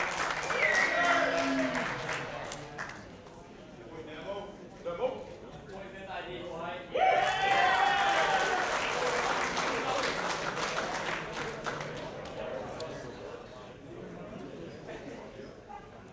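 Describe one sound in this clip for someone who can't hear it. A crowd of young men and women cheers and shouts loudly in an echoing room.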